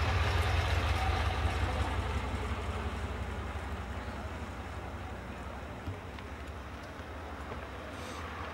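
Car engines rumble low and steadily, slowly growing quieter.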